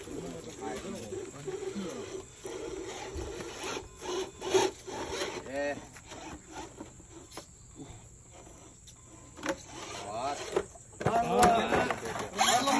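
A small electric motor whines as a toy car climbs a dirt slope.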